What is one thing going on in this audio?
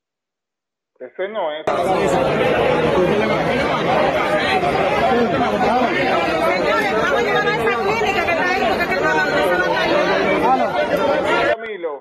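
A crowd of men and women talk and shout excitedly close by.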